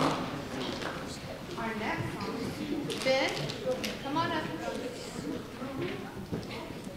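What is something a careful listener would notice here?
A young child speaks through a microphone.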